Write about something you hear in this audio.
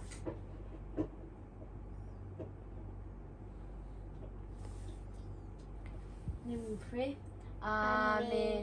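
Bodies shuffle and thump softly on a mattress.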